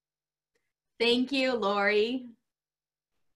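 A second middle-aged woman speaks cheerfully over an online call.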